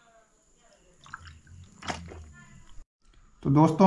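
A young man gulps water from a plastic bottle.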